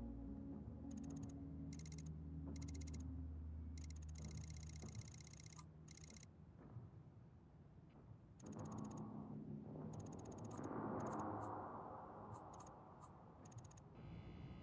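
Short electronic menu tones beep and tick.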